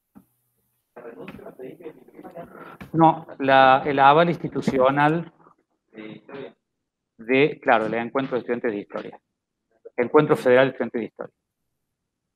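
A middle-aged man speaks calmly through an online call, his voice slightly muffled.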